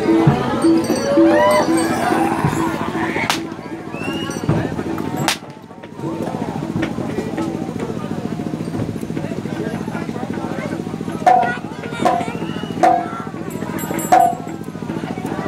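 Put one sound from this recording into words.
A crowd of men talk and call out nearby, outdoors.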